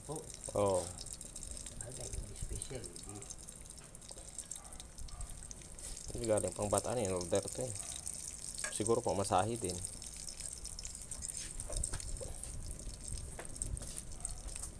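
A fork scrapes and taps against a metal wok.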